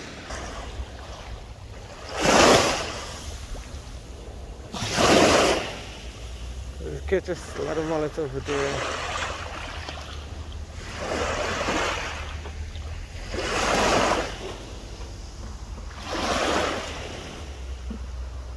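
Small waves splash and lap against rocks near the water's edge.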